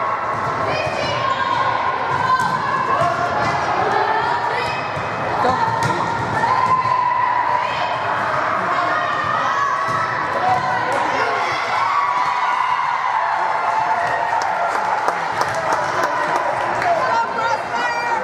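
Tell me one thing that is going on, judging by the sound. A volleyball is struck with hands and arms in an echoing gym.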